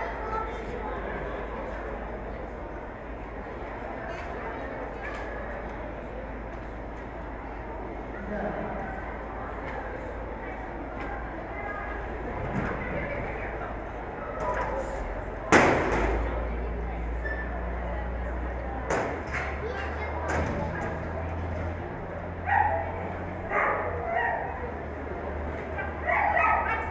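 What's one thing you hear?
A hum of people and activity fills a large echoing hall.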